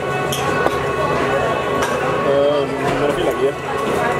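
A glass bottle is set down on a table with a knock.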